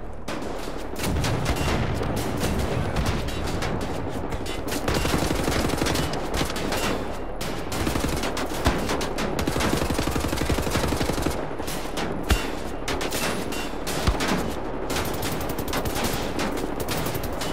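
Guns fire in rapid, rattling bursts.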